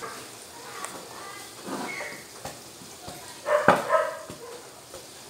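A wooden pestle thumps and pounds food in a metal pot.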